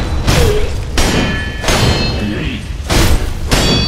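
Swords clash with sharp metallic rings.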